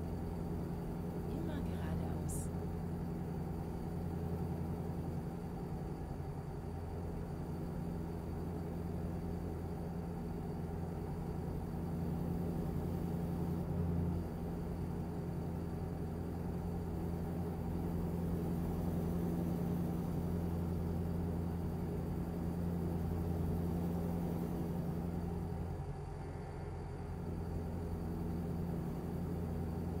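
Tyres roll on a motorway with a low rumble.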